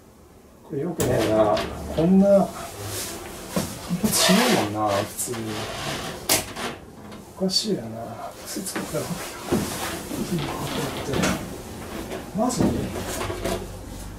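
A man talks close by.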